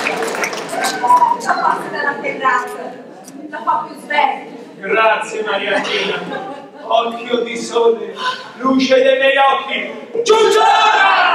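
A young man speaks in an echoing hall.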